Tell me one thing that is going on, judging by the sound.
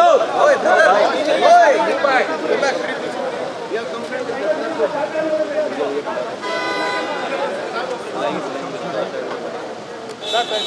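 A crowd of men talk over one another outdoors.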